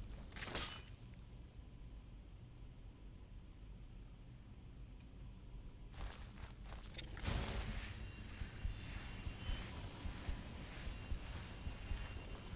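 Flames crackle and hiss.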